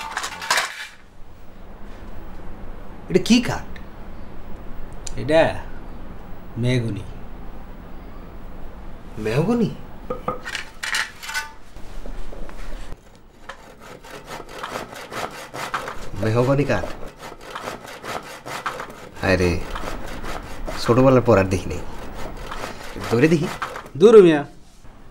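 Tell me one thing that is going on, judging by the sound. A young man speaks calmly and close by.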